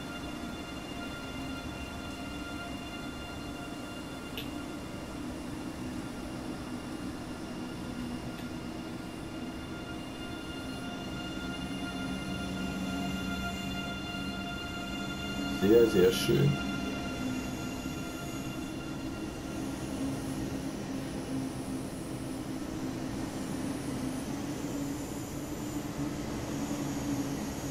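A high-speed train rumbles steadily past on the tracks.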